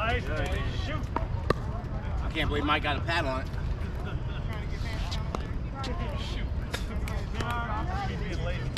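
Men talk and call out casually nearby.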